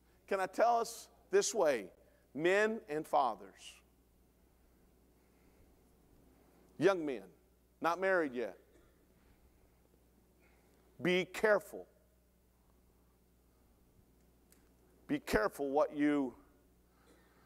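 A middle-aged man speaks calmly through a microphone, with pauses between phrases.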